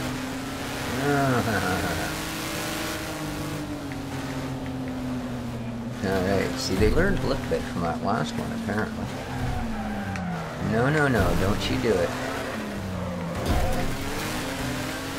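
Other race car engines roar past nearby.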